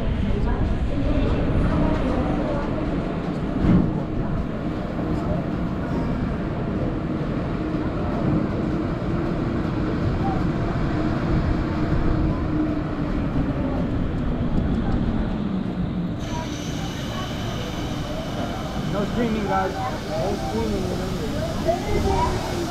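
Wind buffets and roars high up outdoors.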